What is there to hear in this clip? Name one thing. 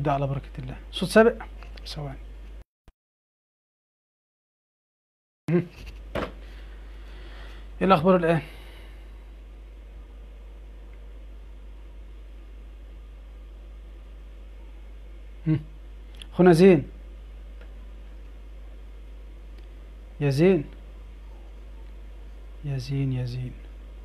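A man speaks calmly in short bursts, close to a headset microphone.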